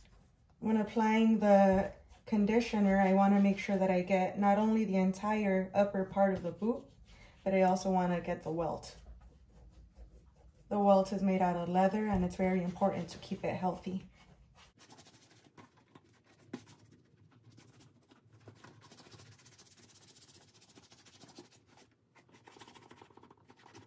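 Hands rub and buff a leather boot with a soft swishing.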